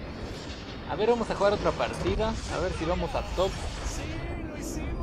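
A huge crystal explodes with a deep rumble.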